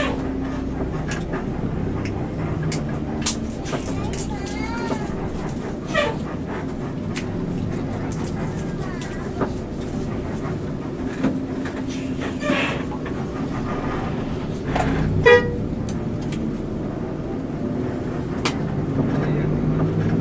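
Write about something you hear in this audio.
A large vehicle's engine hums and rumbles steadily from inside the cab.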